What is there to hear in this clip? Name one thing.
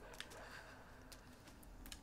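A child's light footsteps patter on a hard floor.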